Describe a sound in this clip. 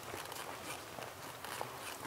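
Footsteps tap on a stone pavement close by.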